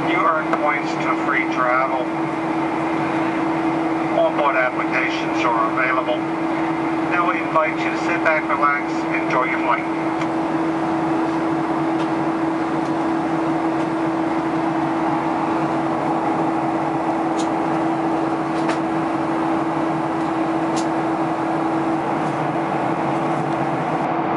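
A jet airliner's engines drone steadily from inside the cabin.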